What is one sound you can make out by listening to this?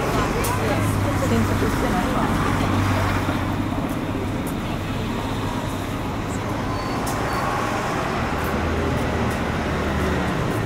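A bus engine hums nearby.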